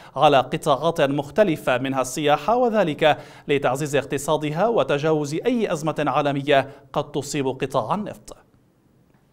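A young man speaks steadily and clearly into a microphone.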